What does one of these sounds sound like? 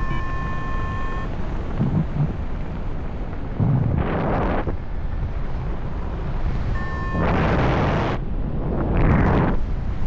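Wind rushes loudly past the open cockpit in gusts.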